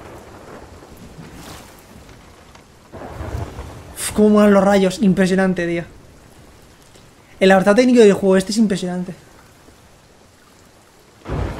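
Heavy rain pours down outdoors in a storm.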